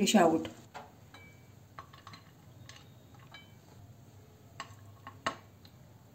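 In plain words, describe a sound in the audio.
A spatula clinks lightly on a plate.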